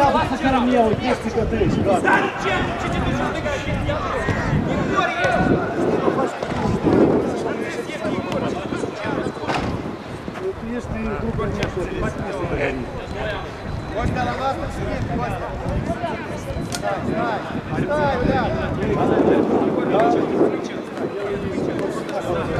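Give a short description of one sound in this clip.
A football thuds as players kick it on the pitch.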